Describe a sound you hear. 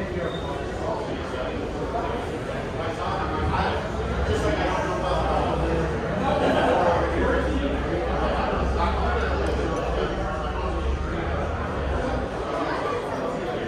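A crowd of people chatters nearby in a large room.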